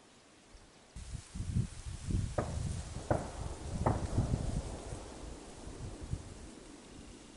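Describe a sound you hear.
Wind rustles through tall reeds close by, outdoors.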